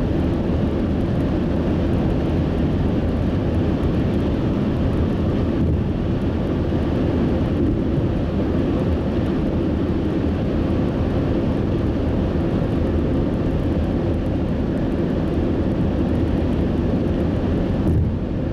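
Tyres roll steadily on a road.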